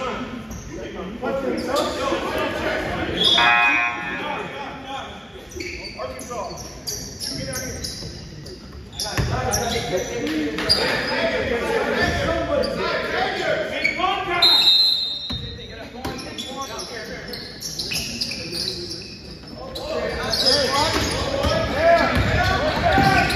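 Young players talk and call out in a large echoing gym.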